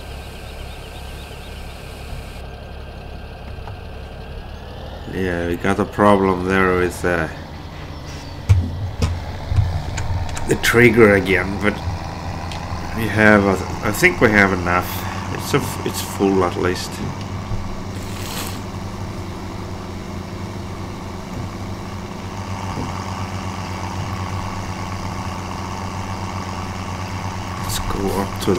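A diesel farm tractor engine drones as the tractor drives along.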